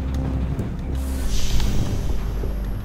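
A heavy metal load clanks down.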